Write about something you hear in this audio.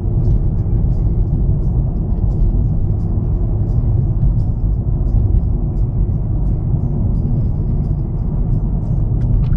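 Road noise rumbles inside a car driving on asphalt.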